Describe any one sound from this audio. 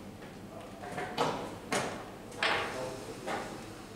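A wooden chess piece is set down on a board with a light knock.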